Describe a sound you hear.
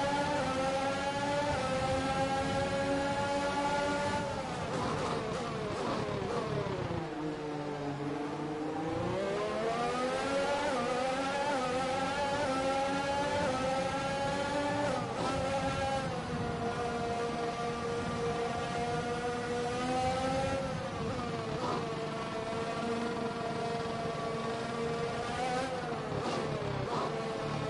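A racing car engine screams at high revs, dropping in pitch as it brakes and climbing again as it speeds up.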